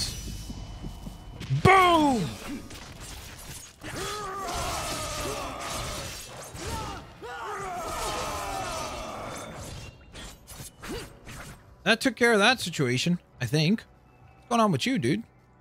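Blades swish and clash in a fierce fight.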